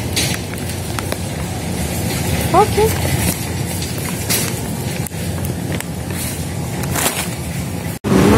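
A plastic food bag crinkles as a hand handles it.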